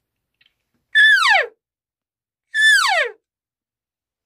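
A man blows a hand-held game call up close, making two high falling cries.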